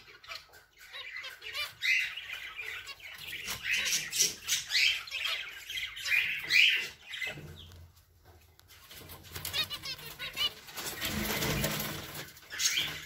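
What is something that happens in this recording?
Small finches chirp and beep in quick bursts close by.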